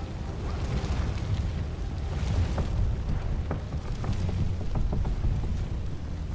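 Fire roars and crackles nearby.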